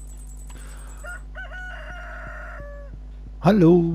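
A short electronic chime plays as a game menu opens.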